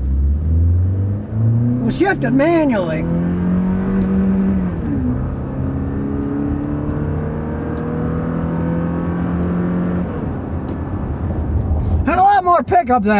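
A car engine hums and rises in pitch as the car speeds up.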